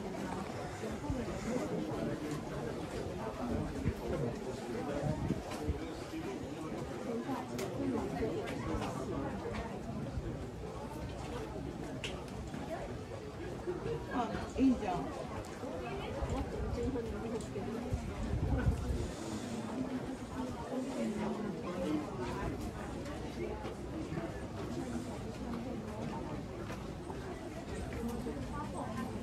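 A crowd of people chatter nearby, outdoors.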